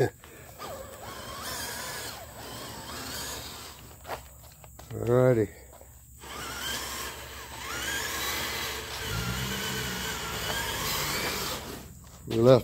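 A small electric motor whines as a toy truck drives along.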